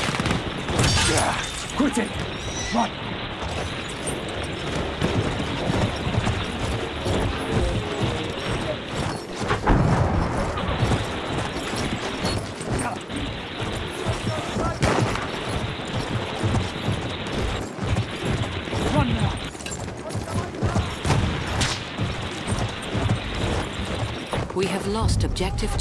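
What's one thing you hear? Gunshots and explosions bang in the distance.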